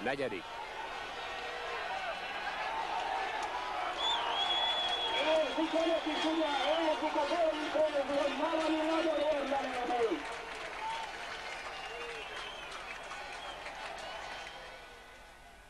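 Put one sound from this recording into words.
A large crowd cheers and whistles in an open stadium.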